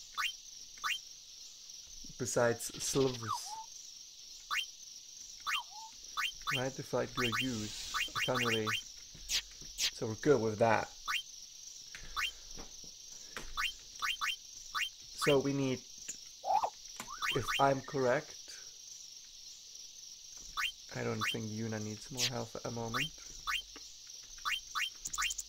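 Short electronic menu blips sound again and again.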